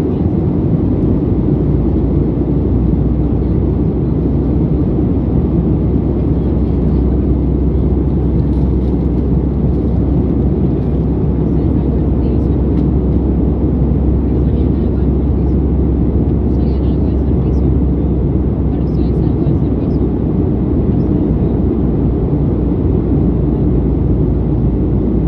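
Jet engines roar with a steady, deep drone heard from inside an airliner cabin.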